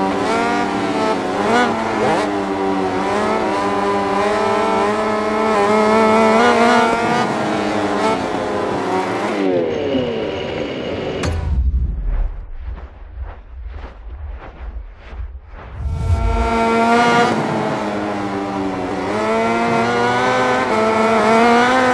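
A motorcycle engine whines loudly, rising and falling in pitch as it shifts gears.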